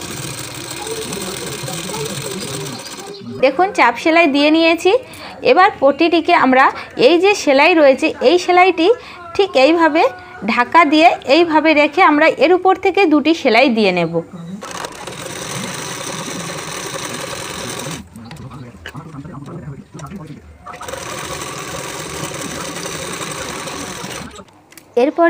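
A sewing machine runs with a steady whirring hum.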